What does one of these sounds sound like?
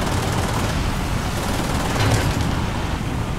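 A shell explodes nearby.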